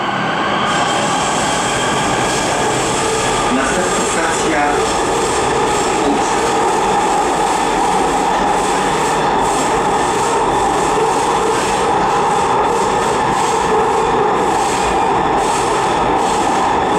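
A subway train rumbles and roars steadily along the track.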